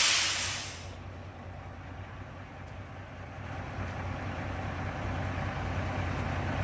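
A truck engine idles with a low, steady rumble close by.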